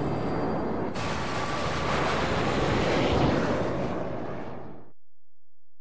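A spaceship's engines roar loudly, then fade away.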